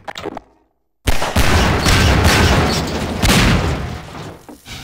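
Gunshots crack loudly, one after another.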